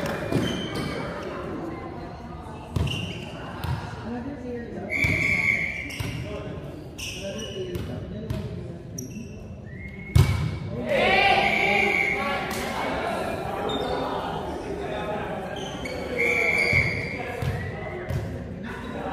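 A volleyball is struck with sharp slaps that echo in a large hall.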